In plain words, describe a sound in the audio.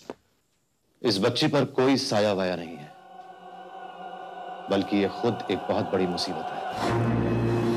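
A middle-aged man speaks firmly and seriously, close by.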